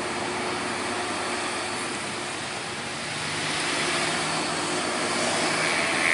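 A dump truck roars by close up.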